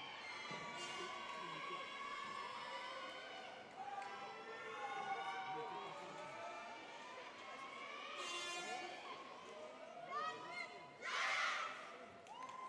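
Upbeat music plays loudly through loudspeakers in a large hall.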